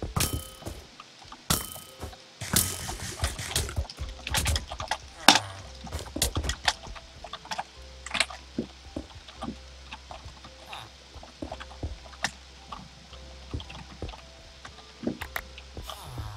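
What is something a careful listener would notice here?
Quick knocks and crunches of blocks being struck ring out throughout.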